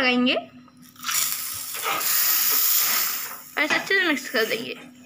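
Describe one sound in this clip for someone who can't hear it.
A ladle pours thick liquid into a plastic bowl.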